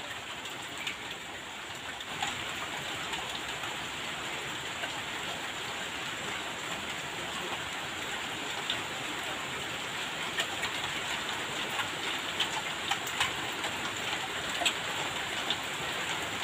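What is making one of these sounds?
Water pours from above and splashes onto the ground.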